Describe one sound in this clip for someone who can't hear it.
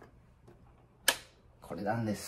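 A plastic switch snaps with a sharp click.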